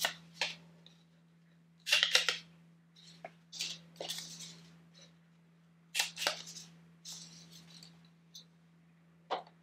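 Paper rustles and clicks against dry twigs.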